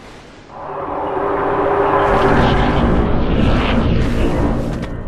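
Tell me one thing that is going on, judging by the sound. A deep, airy whoosh swells and rumbles.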